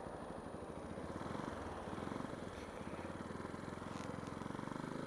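A single-cylinder 125cc supermoto engine revs up as the motorcycle pulls away.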